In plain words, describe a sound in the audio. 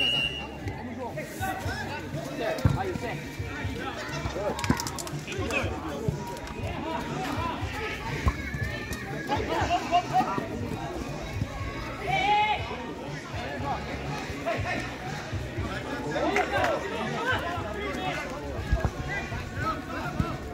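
Men shout and call out to each other across an outdoor pitch.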